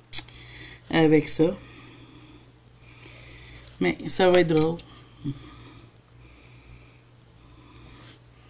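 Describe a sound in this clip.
A coloured pencil scratches softly on paper.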